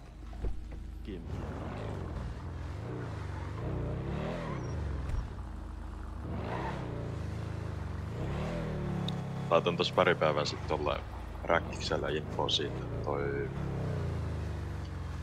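A car engine revs and roars, rising and falling.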